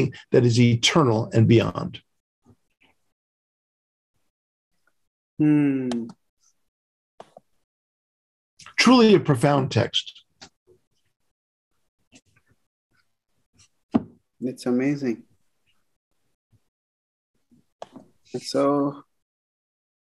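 An elderly man speaks calmly over an online call, with pauses.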